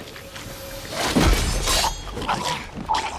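A sword swings and strikes in a brief fight.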